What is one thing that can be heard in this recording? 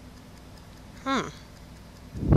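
A young man gasps sharply in alarm.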